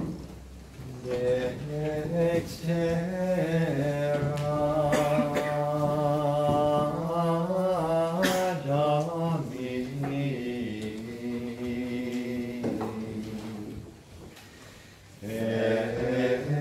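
Voices sing a slow chant in a large echoing hall.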